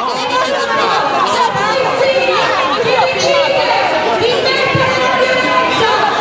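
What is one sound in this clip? An elderly woman argues loudly close by.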